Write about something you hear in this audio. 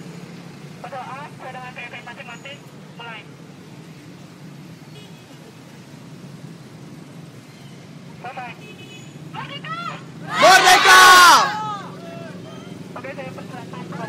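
A woman leads a chant loudly outdoors.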